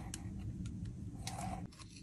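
A metal spatula scrapes at pressed powder.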